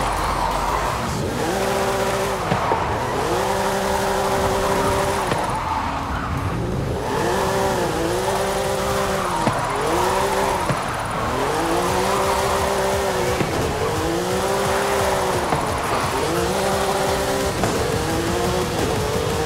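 A small car engine revs up and down repeatedly.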